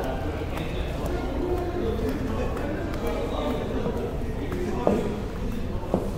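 Footsteps tread down a metal staircase.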